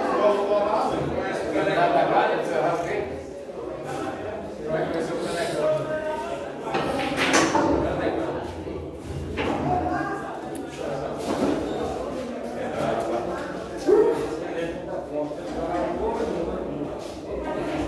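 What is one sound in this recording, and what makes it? Men talk casually nearby in a room with hard walls.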